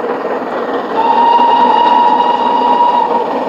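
A steam locomotive's whistle blows a long steady note.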